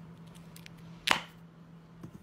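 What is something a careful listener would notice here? A small box knocks sharply against a hard surface.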